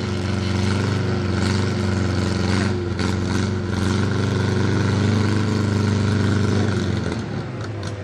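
An SUV engine drones steadily as it churns through mud.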